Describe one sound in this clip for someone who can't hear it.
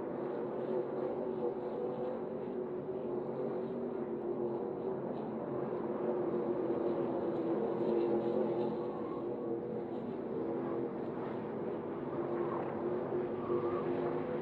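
A racing truck engine roars loudly as it speeds along.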